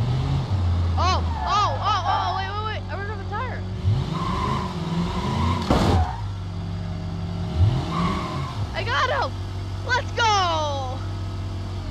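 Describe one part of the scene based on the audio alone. A police siren whoops in short bursts.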